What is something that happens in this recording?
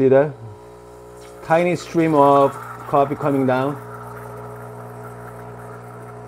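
Coffee trickles into a glass.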